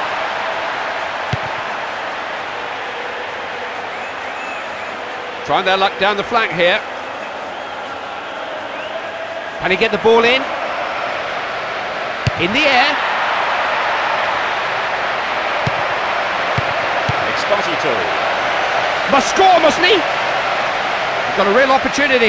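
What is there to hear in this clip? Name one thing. A large crowd murmurs and roars steadily in a big stadium.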